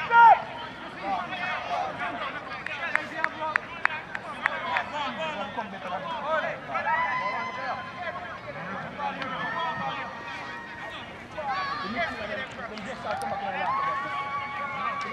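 Young men shout and call to each other across an open field at a distance.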